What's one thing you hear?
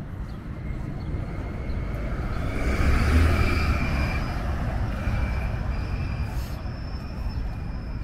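A bus drives past with an engine roar that swells and fades.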